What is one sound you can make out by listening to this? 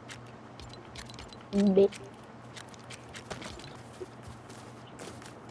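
Soft game menu clicks tick as items are browsed.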